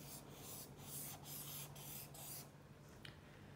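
A felt-tip marker scratches across paper in quick strokes.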